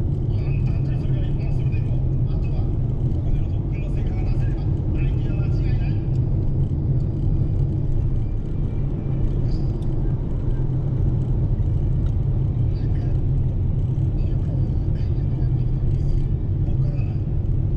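A large vehicle's diesel engine rumbles steadily from inside the cab.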